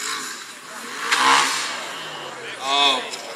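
An off-road vehicle's engine revs hard as it climbs a steep slope.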